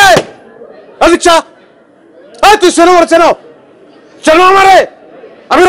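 A man shouts forcefully in short, loud bursts close by.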